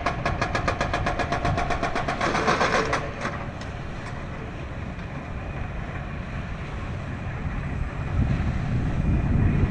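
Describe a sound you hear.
Water splashes and rushes along a boat's hull.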